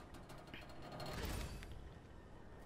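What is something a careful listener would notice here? A heavy electrical switch clunks into place.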